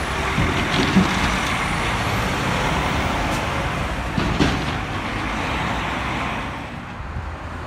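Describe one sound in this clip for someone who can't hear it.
A dump truck drives past with a deep diesel roar.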